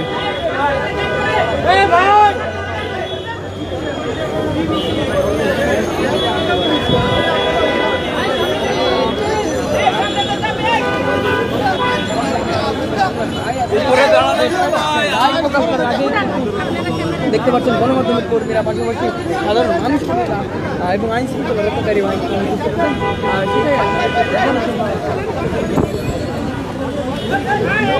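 A large crowd of men talks and shouts loudly all around, close by.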